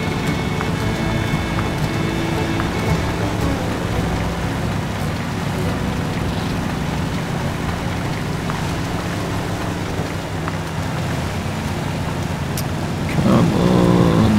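A truck engine rumbles steadily as it drives over rough ground.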